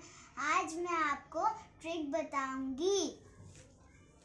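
A young girl speaks brightly and close by.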